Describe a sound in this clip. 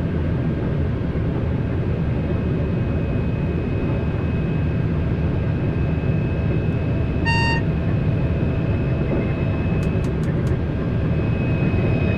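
A train rumbles steadily along the tracks at high speed.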